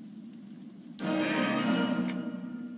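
A bright reward chime rings out.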